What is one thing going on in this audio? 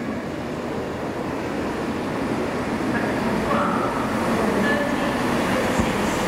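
A diesel train approaches, its engine rumbling louder as it nears.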